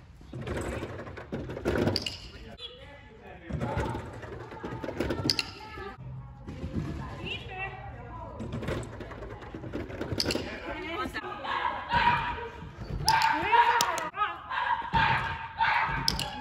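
A dog's paws thump across a wooden ramp.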